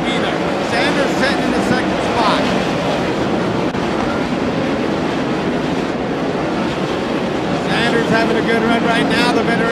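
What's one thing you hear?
Racing car engines roar loudly and rev up and down as the cars speed around the track.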